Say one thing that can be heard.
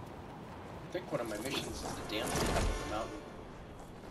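A glider canopy opens with a loud flapping whoosh.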